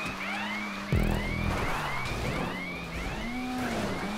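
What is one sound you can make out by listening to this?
A car bangs and scrapes against a wall.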